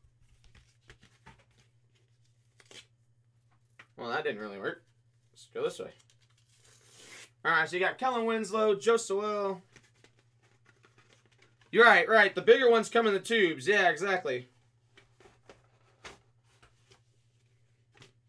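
Paper sheets rustle in a young man's hands.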